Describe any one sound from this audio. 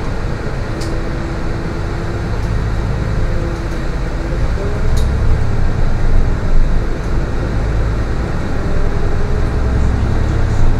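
A bus engine hums steadily as the bus drives along a road.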